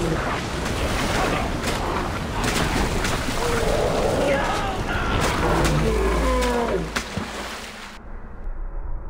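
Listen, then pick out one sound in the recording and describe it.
Water splashes and swirls around a swimmer.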